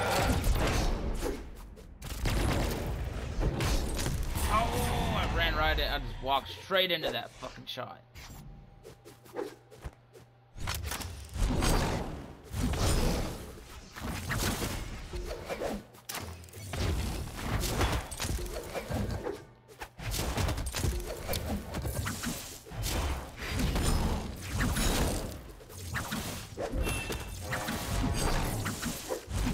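Game fighters clash with rapid hits and whooshing swipes.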